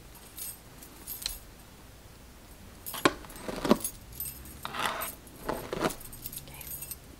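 A brush strokes through long hair with soft rustling.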